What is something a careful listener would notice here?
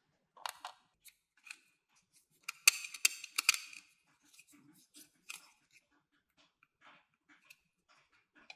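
Plastic toy pieces click and tap as they are handled.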